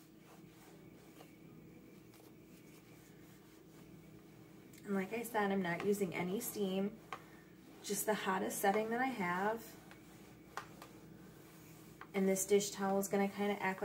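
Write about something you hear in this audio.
An iron slides and rubs over fabric.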